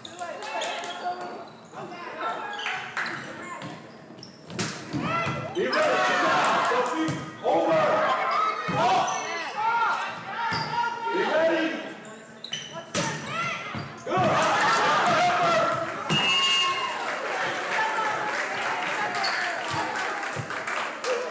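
Young women shout and call out to each other in a large echoing gym.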